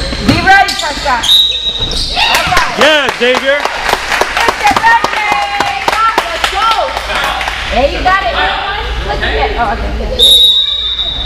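Children shout and cheer in a large echoing hall.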